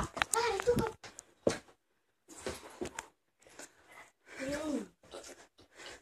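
A child shouts and laughs close by.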